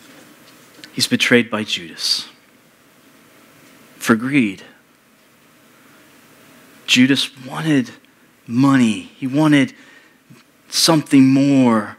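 A man speaks calmly in short phrases with pauses, heard through a microphone in a large room.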